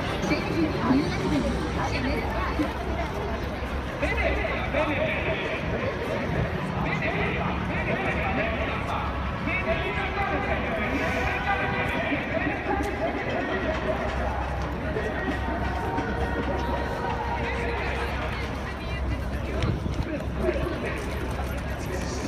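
A dense crowd murmurs and chatters all around outdoors.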